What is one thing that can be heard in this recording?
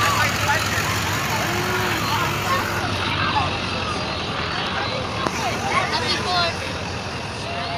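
A crowd of people chatters and calls out along a street outdoors.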